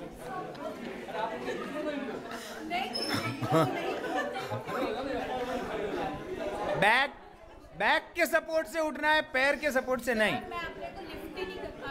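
A woman laughs close by.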